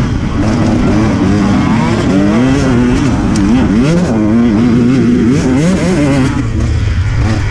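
A second dirt bike engine buzzes nearby.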